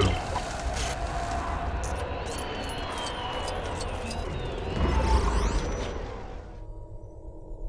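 A lightsaber hums and crackles with sparks.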